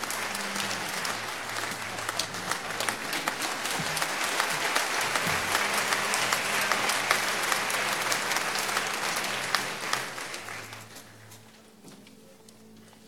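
An audience applauds loudly, then the applause fades away.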